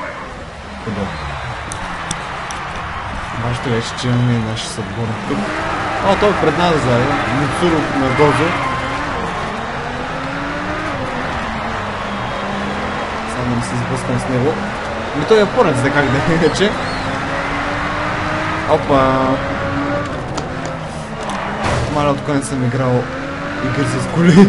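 Race car engines roar and rev up and down.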